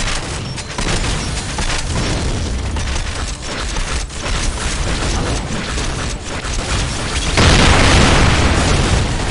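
A heavy gun fires in rapid bursts.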